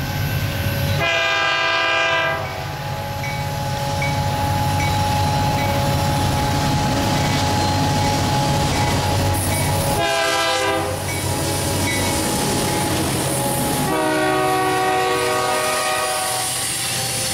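A train horn blasts several times.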